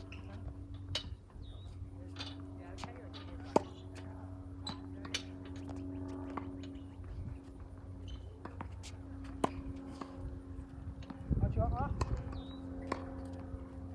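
Tennis balls are struck with a racket, one after another, outdoors.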